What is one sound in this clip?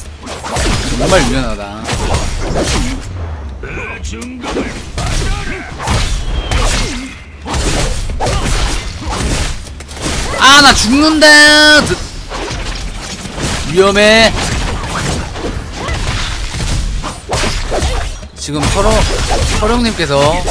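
Sword slashes and magic blasts clash and whoosh.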